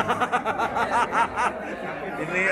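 A man laughs heartily close by.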